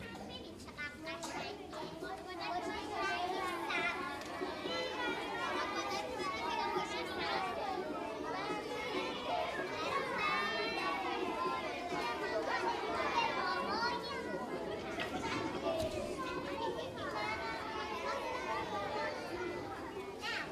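A choir of children sings loudly in a large hall.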